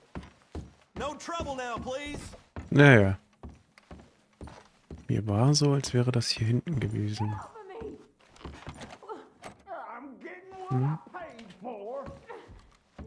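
A man shouts angrily from behind a door.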